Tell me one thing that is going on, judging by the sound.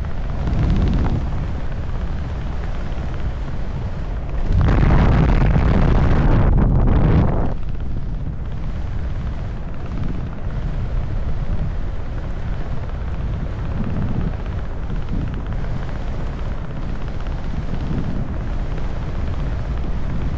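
Wind rushes loudly past a microphone, gusting stronger for a few seconds.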